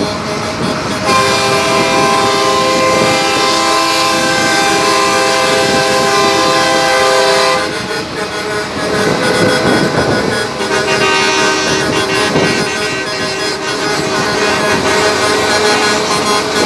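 Heavy truck engines rumble loudly as trucks roll past close by.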